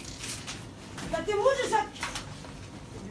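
A woman speaks loudly and excitedly nearby.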